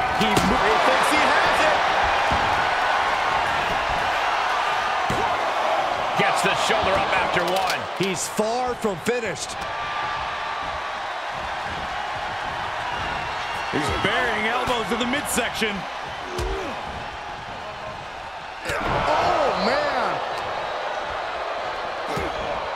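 Bodies thud on a wrestling ring mat.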